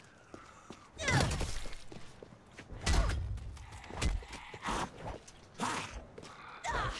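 Heavy melee blows thud and smack against bodies.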